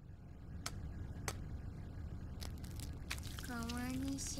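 Eggs crack against the rim of a pan.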